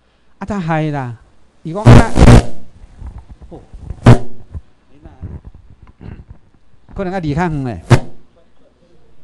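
A man lectures loudly through a microphone in a room with some echo.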